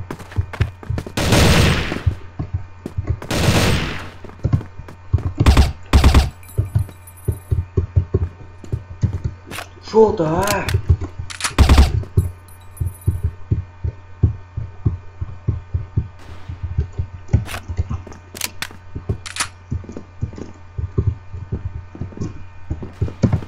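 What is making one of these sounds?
Footsteps patter steadily on hard ground.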